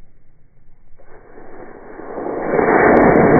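A model rocket motor ignites with a growing hiss.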